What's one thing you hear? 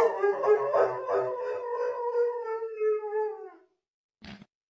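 A dog howls loudly, long and wavering.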